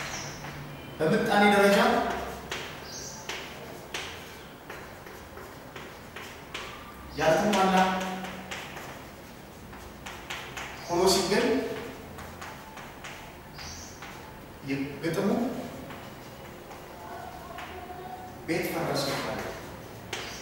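A man speaks loudly in short bursts, with pauses between phrases.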